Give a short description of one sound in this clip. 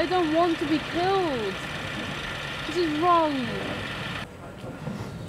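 Pigs squeal loudly inside a truck.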